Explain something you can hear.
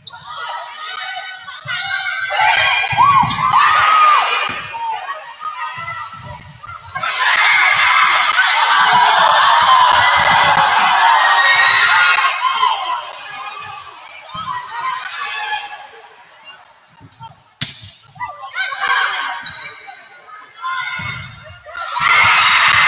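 Young women players call out to each other on the court.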